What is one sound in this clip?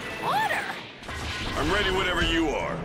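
Rocks and dirt burst with a crash.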